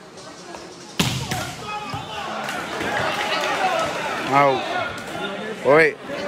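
A crowd cheers and murmurs in an echoing hall.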